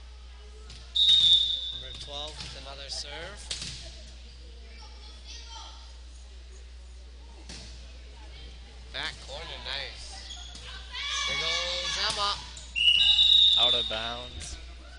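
A referee's whistle blows sharply in a large echoing gym.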